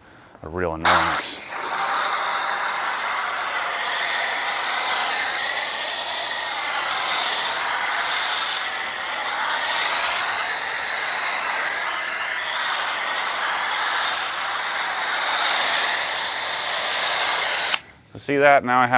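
A pressure washer sprays water with a steady loud hiss.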